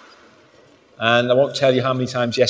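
A man speaks clearly through a microphone in a large echoing hall.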